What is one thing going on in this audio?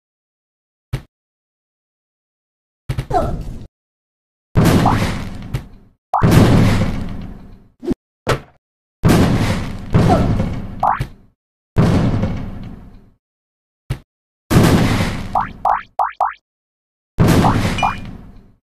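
Game bombs explode with loud booming blasts, over and over.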